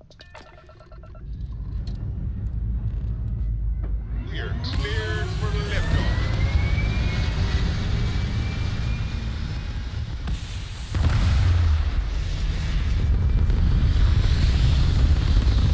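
Spaceship engines rumble and roar loudly as the ship lifts off and flies away.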